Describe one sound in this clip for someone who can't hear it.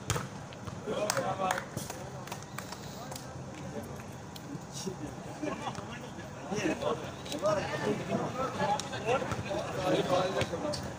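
Young men talk nearby.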